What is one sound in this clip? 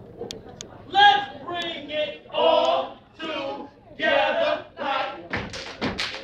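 A group of young people shout a chant in unison in a large echoing hall.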